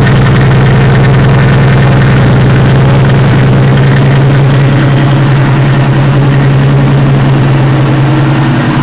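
A car engine idles close by with a loud, steady, throbbing rumble.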